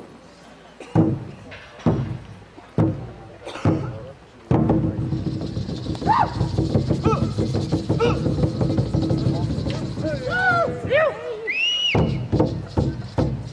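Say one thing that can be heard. Drums thump loudly.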